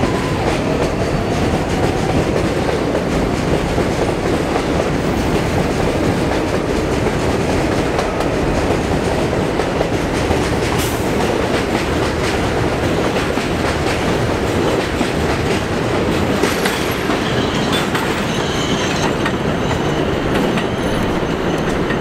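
A train rumbles loudly past close by and slowly pulls away.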